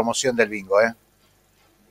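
An elderly man talks calmly over an online call.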